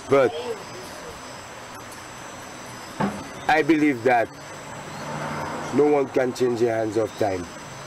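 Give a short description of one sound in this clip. A man speaks calmly close by, outdoors.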